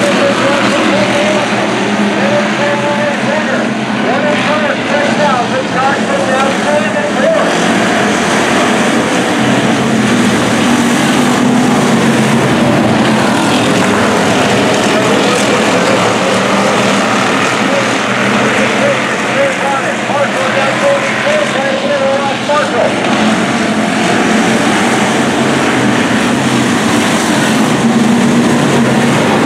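Race car engines roar loudly, rising and falling in pitch.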